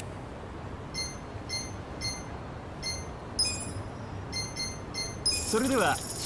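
Short electronic chimes sound as menu options are picked.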